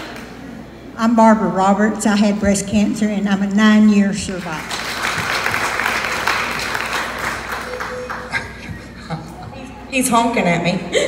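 A woman speaks loudly through a loudspeaker.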